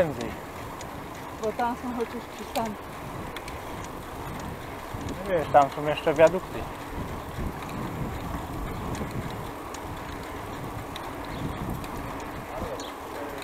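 Bicycle tyres hum steadily on an asphalt road.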